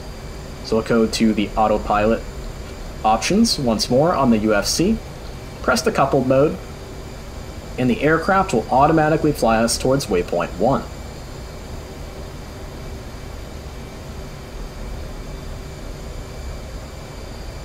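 A jet engine hums low and steady.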